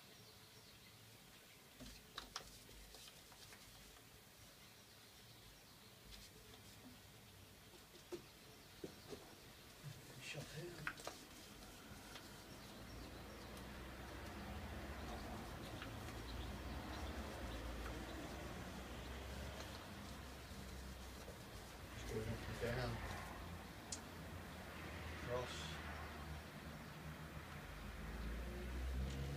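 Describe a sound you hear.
A paintbrush swishes and scrapes against a wooden door.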